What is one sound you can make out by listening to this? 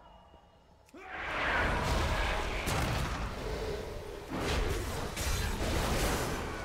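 Magical spell effects whoosh and crackle during a fantasy battle.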